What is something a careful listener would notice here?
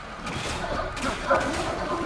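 A gunshot rings out.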